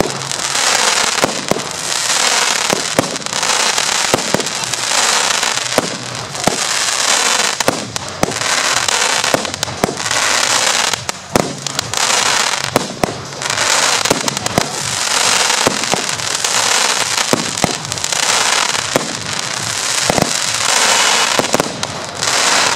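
Crackling firework stars fizz and pop in dense rapid bursts.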